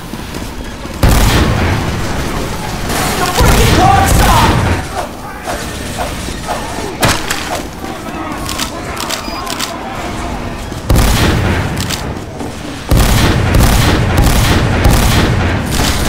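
A shotgun fires in a video game.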